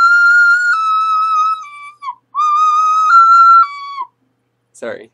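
A small ocarina plays a simple melody up close.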